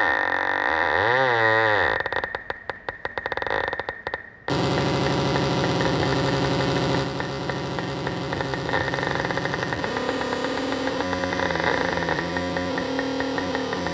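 Electronic music plays loudly through a loudspeaker.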